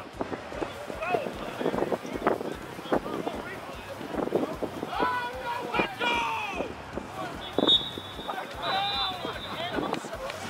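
Men and women shout and call out across an open field outdoors.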